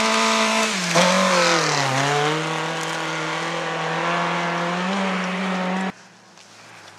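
A rally car engine roars loudly, revving up and down.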